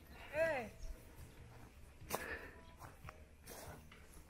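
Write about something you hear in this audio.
A buffalo tears at grass as it grazes.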